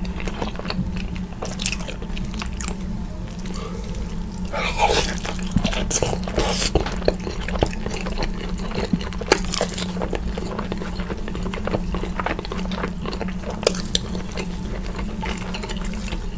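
Crispy skin crackles and tears as food is pulled apart by hand.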